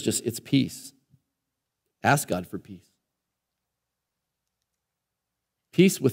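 A man speaks with animation through a microphone, pausing between phrases.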